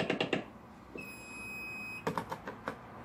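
An alarm sounder gives a short, shrill electronic beep.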